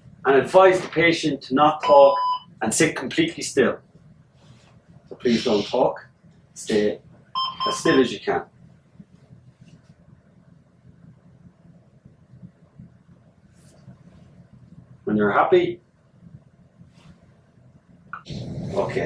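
A man speaks calmly and clearly, close by, as if explaining.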